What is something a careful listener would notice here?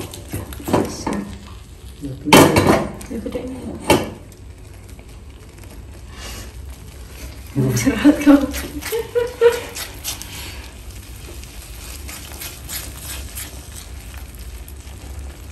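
A silicone spatula stirs a thick, wet mixture in a frying pan.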